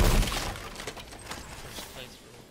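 A heavy chest lid creaks open with a loud burst.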